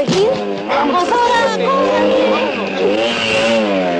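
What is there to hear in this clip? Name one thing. A motorcycle engine revs loudly and speeds away.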